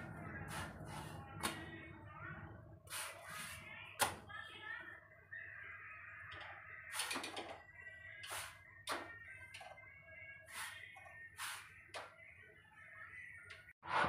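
Kitchen utensils clink and clatter nearby.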